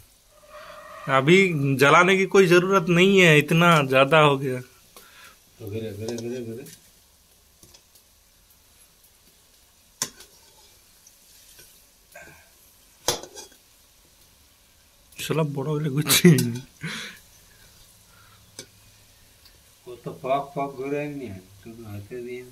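A metal ladle scrapes and clinks against a wok.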